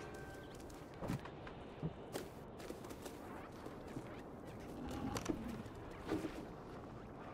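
A cat lands with soft thumps after jumping.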